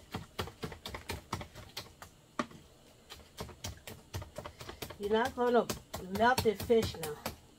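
A wooden spoon scrapes and knocks against a plastic bowl while stirring.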